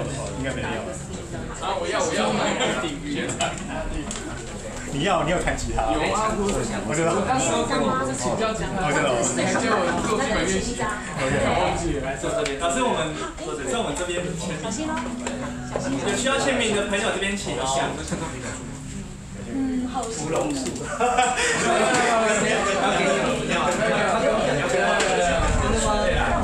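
Several people chatter close by.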